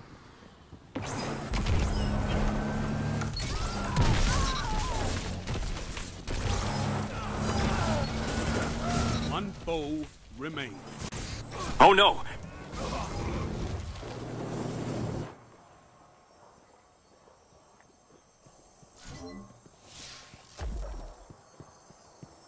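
Rapid gunfire blasts in a video game.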